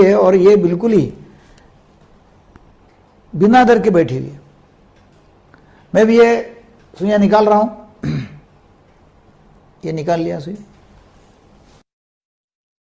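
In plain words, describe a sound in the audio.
An elderly man speaks calmly in short phrases, heard through a recording.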